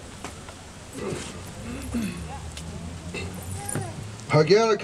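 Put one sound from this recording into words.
A man speaks into a microphone, heard outdoors through a loudspeaker.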